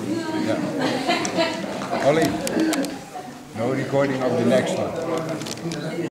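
An elderly man talks close by.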